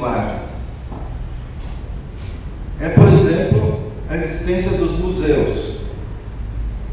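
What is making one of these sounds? An elderly man speaks calmly into a microphone in a quiet, slightly echoing room.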